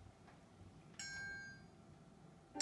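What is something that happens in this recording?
A single handbell rings once and fades.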